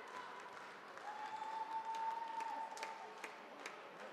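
A referee's whistle blows.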